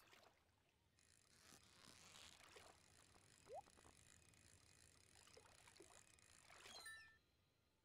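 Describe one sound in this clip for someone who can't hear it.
A fishing reel whirs steadily, then stops.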